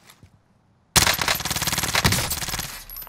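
A rifle fires in a rapid, loud burst close by.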